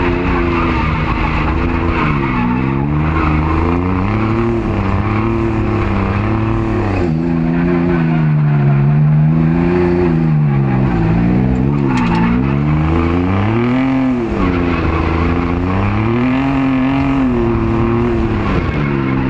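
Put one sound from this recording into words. A car engine roars loudly, revving up and down as the car drifts.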